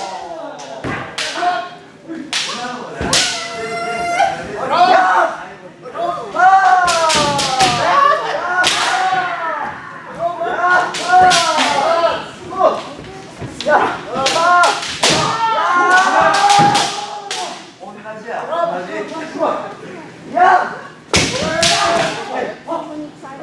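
Bamboo swords clack sharply against each other in an echoing hall.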